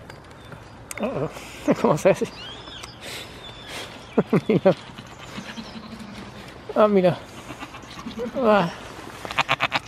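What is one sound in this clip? A goat bleats loudly up close.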